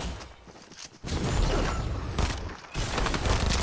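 A jetpack hisses and roars in a video game.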